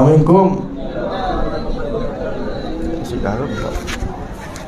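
A man speaks loudly into a microphone with a booming voice.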